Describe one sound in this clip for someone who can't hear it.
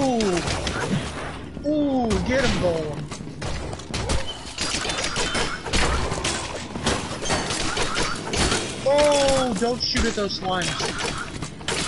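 Weapons strike monsters with rapid sharp hits.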